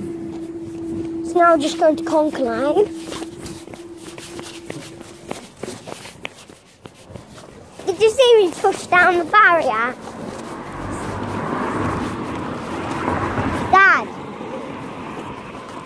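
Footsteps scuff along a paved path.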